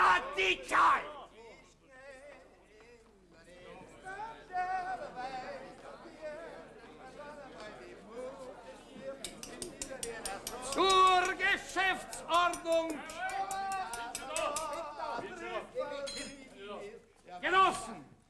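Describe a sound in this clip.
A crowd murmurs and chatters.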